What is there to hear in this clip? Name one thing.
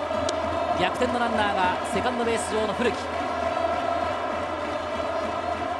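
A large stadium crowd cheers and chants steadily.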